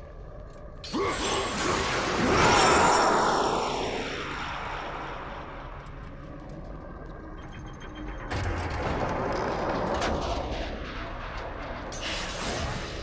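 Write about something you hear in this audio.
Magic crackles and bursts loudly.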